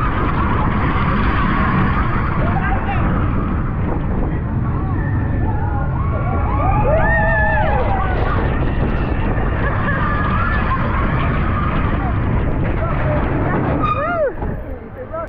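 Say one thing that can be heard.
Wind roars loudly past the microphone of a fast-moving ride.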